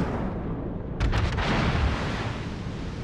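Shells splash into the water nearby.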